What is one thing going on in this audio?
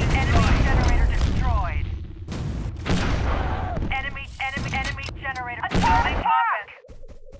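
Explosions boom and roar close by.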